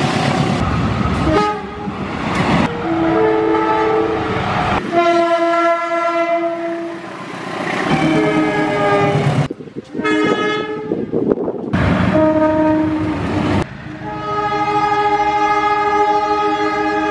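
A diesel locomotive engine rumbles and roars.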